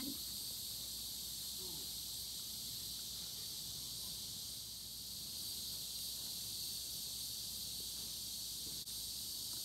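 Small dogs scamper across grass.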